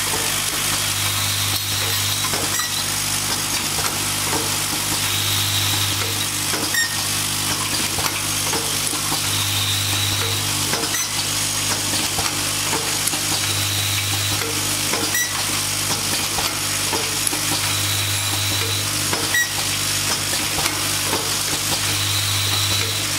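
A machine whirs up in short bursts every few seconds.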